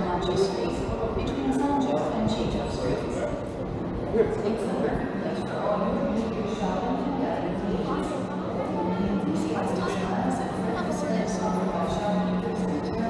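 Footsteps tap on a hard floor in a covered, echoing arcade.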